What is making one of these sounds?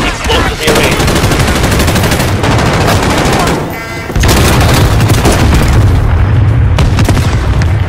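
Gunfire rattles in loud rapid bursts.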